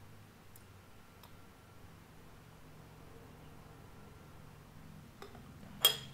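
Liquid pours into a glass.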